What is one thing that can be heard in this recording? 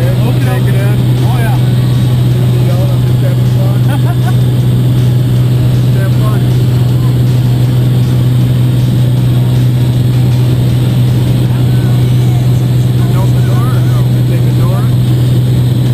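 A man speaks up over the engine noise, close by.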